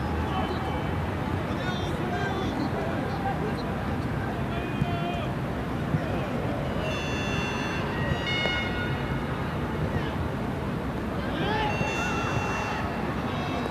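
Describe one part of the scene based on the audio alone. A stadium crowd murmurs and cheers steadily in a large open space.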